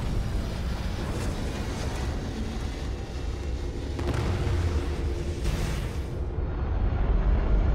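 Spaceship engines roar with a deep, steady rumble.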